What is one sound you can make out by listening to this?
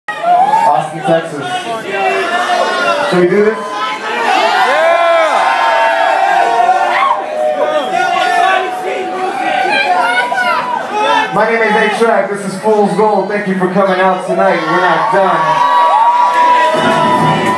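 A young man sings into a microphone over loudspeakers.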